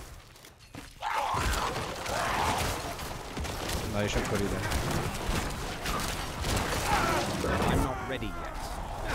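Game combat sounds of blasts and hits rumble and crash.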